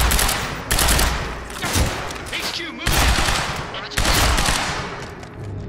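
Gunshots blast loudly in quick bursts.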